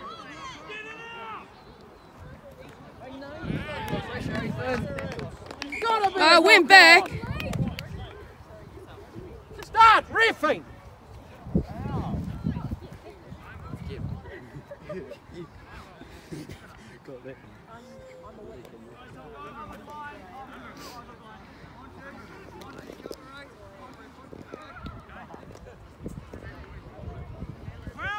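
Young players shout and call to each other outdoors across an open field.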